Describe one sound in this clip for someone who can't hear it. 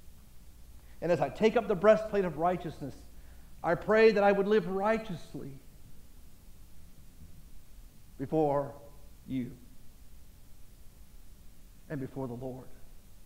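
A middle-aged man preaches with animation through a microphone, in short bursts with pauses.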